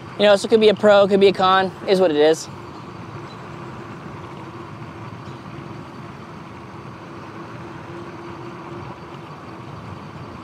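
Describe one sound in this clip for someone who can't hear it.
Bicycle tyres roll steadily over a paved road.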